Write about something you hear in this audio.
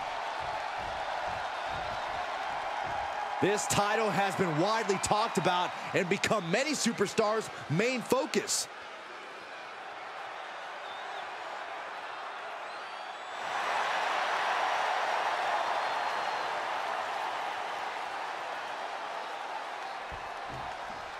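A large arena crowd cheers and murmurs.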